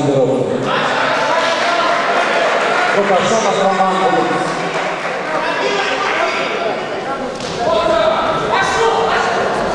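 Several men shout loudly in an echoing hall.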